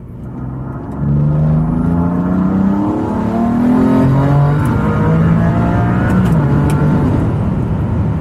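A car engine roars as the car accelerates hard, climbing in pitch through the gears.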